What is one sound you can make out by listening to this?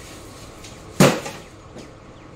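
A cupboard door bangs open.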